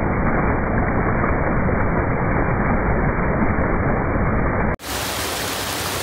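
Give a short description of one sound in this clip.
Water rushes and roars steadily over a weir into churning water.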